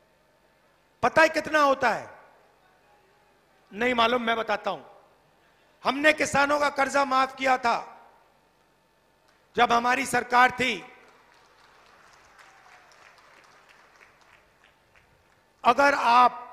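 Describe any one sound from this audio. A middle-aged man speaks forcefully into a microphone over a loudspeaker, in short bursts with pauses.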